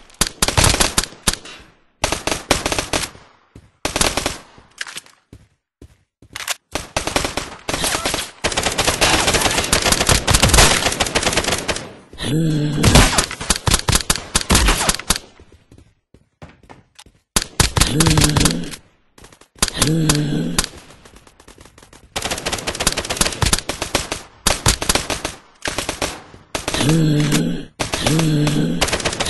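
Rifle gunfire rattles in rapid bursts.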